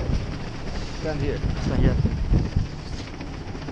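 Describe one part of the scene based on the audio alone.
A man speaks close by, briefly.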